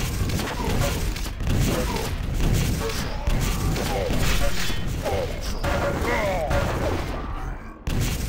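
Rockets explode with loud, booming blasts.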